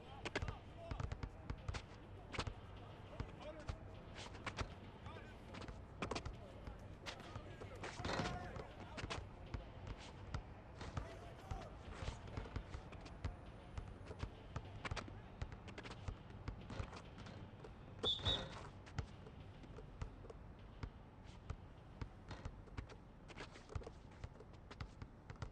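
A basketball is dribbled on an outdoor asphalt court.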